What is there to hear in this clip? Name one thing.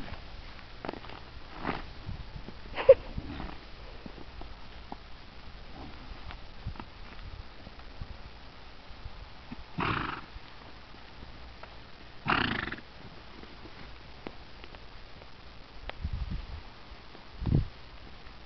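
A horse rolls and thrashes on dry, dusty ground.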